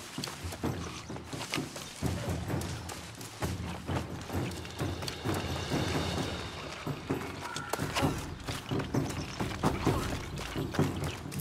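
Footsteps patter quickly over grass and rock.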